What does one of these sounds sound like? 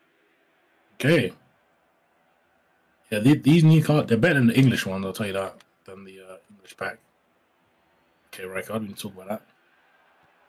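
A man talks with animation into a close headset microphone, in short bursts.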